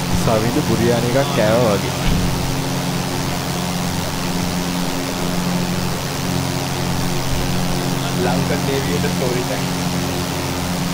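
A light aircraft's propeller engine drones steadily.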